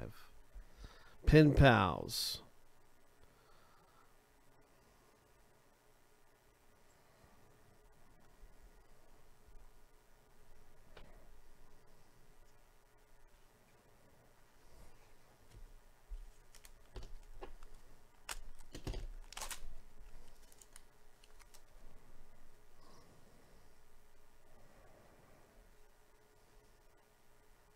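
Trading cards softly slide against each other.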